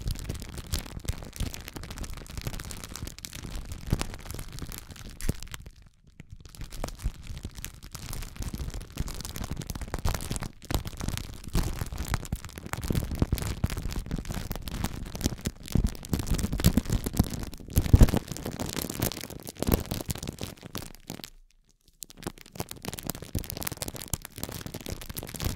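A studded metal roller crackles and crinkles as it rolls over plastic film close up.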